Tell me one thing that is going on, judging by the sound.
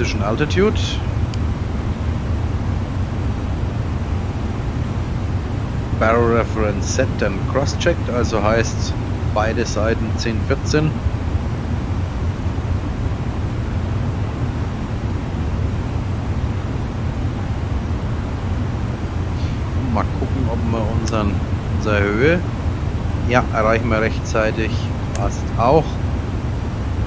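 An airliner's engines hum steadily in a low drone.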